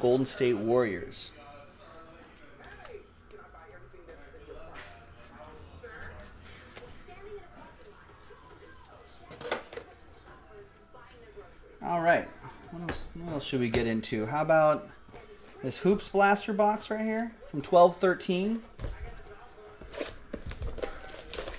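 Cardboard and plastic rustle and tap as hands handle trading cards and a box.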